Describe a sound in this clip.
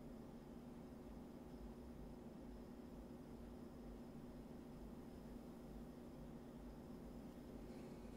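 A brush strokes softly on canvas.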